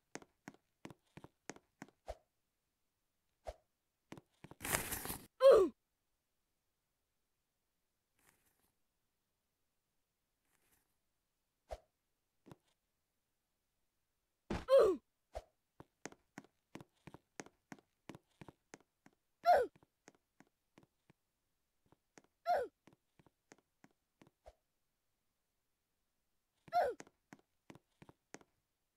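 Footsteps patter quickly in a game.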